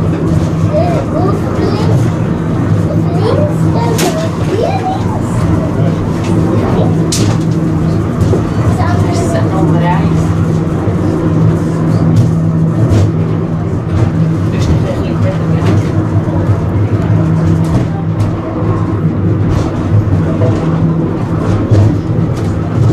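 Wheels click and clack over the rails.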